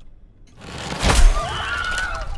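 A catapult arm swings through the air with a loud whoosh.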